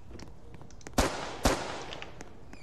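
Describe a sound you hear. A rifle fires a few sharp shots.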